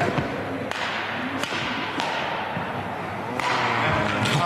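Rackets strike a shuttlecock with sharp taps in an echoing hall.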